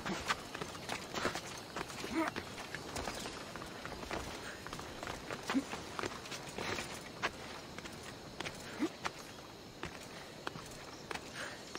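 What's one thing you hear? Hands and feet scrape and tap against rock while climbing.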